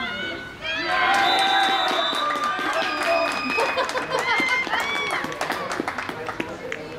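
A group of young women cheer and shout excitedly.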